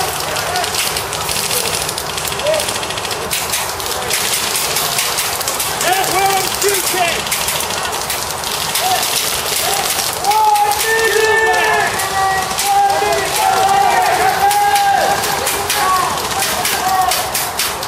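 Airsoft guns fire rapid clicking shots outdoors.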